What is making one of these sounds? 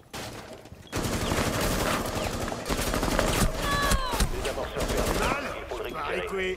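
Gunfire rattles rapidly at close range.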